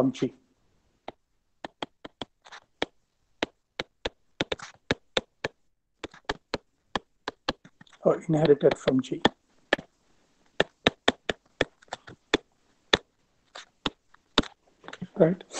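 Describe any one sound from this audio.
A stylus taps and clicks on a tablet as it writes.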